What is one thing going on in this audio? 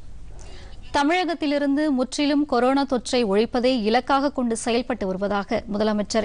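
A woman reads out news calmly and clearly through a microphone.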